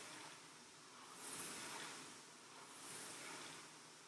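A rowing machine's flywheel whirs in swelling, fading whooshes with each stroke.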